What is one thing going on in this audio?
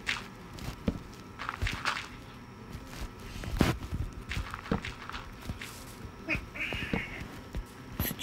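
Blocks are placed with short, soft thuds.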